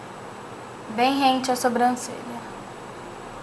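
A young woman speaks briefly and calmly close to the microphone.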